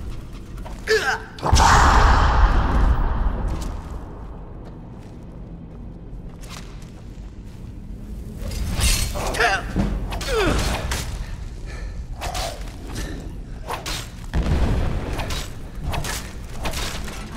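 A creature snarls and groans.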